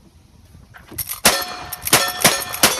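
A rifle fires several loud shots outdoors.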